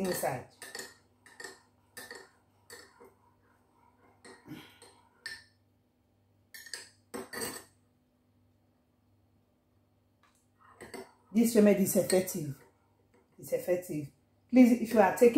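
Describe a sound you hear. A spoon clinks against a ceramic mug.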